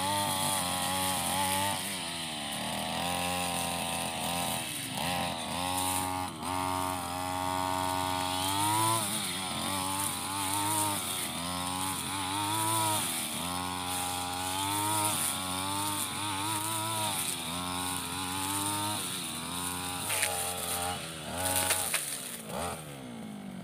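A string trimmer engine whines loudly, revving up and down.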